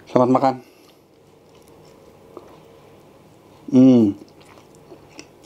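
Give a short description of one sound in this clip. A young man chews food softly.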